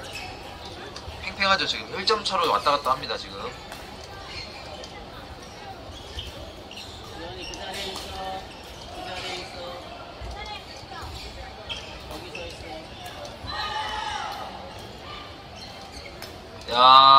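Shuttlecocks are struck by rackets with sharp pops in a large echoing hall.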